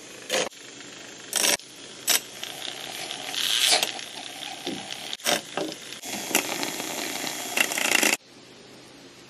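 A handheld milk frother whirs as it froths milk in a glass jar.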